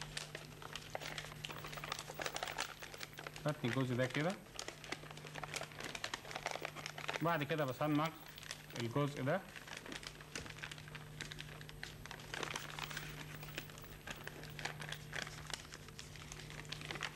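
Paper rustles and crinkles as it is folded by hand.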